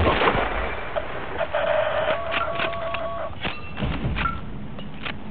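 A rifle bolt clicks as it is worked back and forth.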